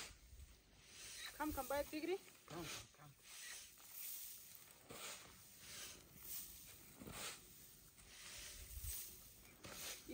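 Tossed grain patters down onto a tarp.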